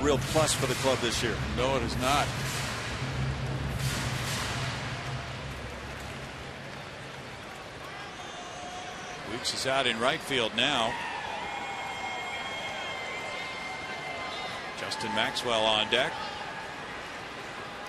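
A crowd murmurs softly in a large open stadium.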